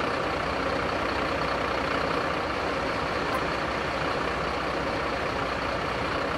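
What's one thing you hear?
A fire extinguisher sprays with a steady hiss.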